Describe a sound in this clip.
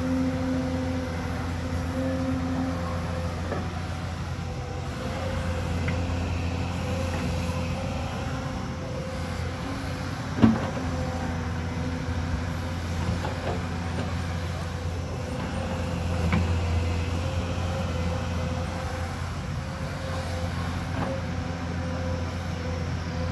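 An excavator's bucket scrapes and thumps into loose earth and rock.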